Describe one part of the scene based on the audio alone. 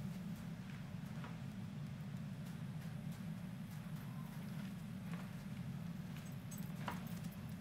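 Footsteps patter quickly on sand.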